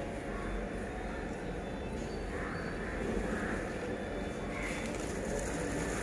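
Cloth rustles as it is unfolded and handled.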